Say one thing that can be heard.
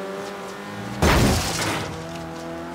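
A car thuds against another car.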